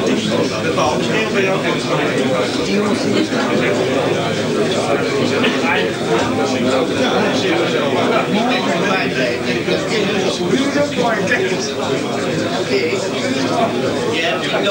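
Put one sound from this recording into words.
Many men and women chatter and murmur together in a crowded room.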